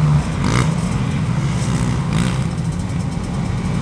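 Motorcycle engines rev and whine nearby.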